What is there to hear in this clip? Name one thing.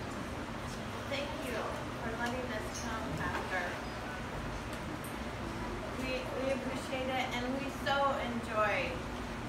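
An older woman speaks calmly, a few steps away.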